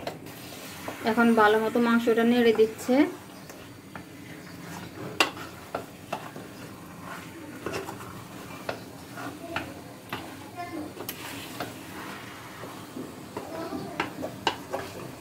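A wooden spatula knocks and scrapes against a metal pot.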